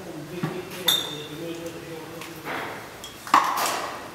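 Liquid pours from a jug through a funnel into a glass bottle.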